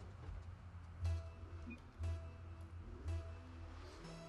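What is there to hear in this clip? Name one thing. Countdown beeps sound three times.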